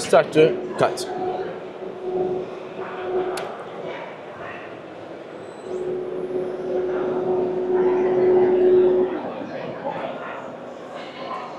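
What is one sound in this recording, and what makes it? A crowd murmurs in the background of a large hall.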